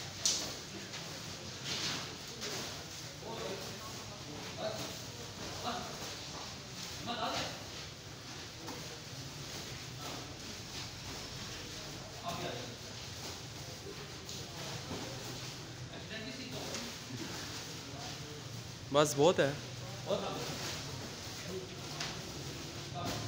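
A crowd of men chatters and calls out nearby in a large echoing hall.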